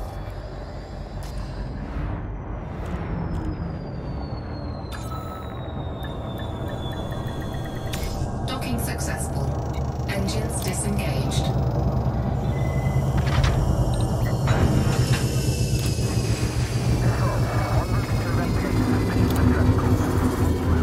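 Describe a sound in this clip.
A spaceship engine hums low and steadily, growing louder and deeper.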